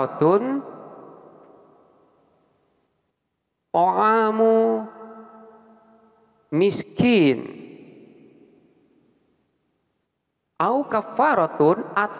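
A man speaks slowly through a microphone, in a strongly echoing room.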